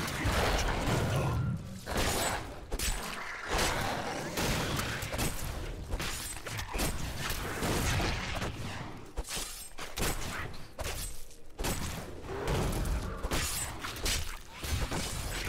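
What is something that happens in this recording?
Weapons strike in quick blows.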